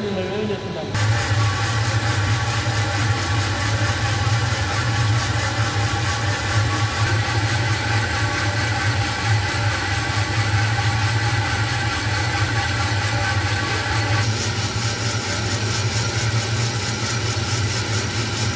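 A coffee roaster's motor hums steadily.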